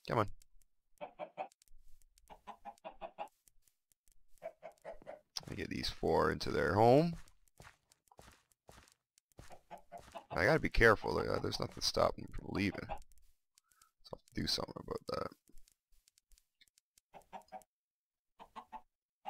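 Chickens cluck softly in short bursts.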